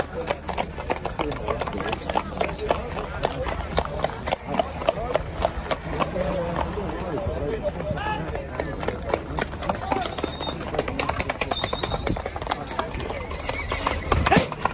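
Horse hooves clop quickly on a paved road.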